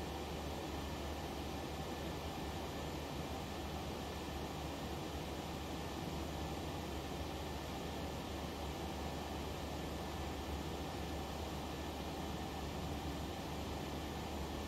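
A jet engine roars steadily in flight.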